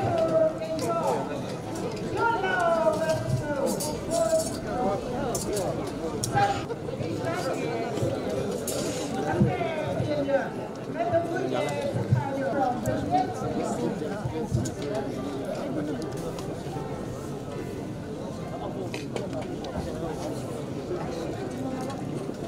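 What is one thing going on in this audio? Serving spoons and forks clink against metal pots and plates.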